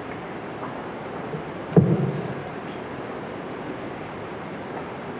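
A woman speaks through a microphone and loudspeakers in a large echoing hall.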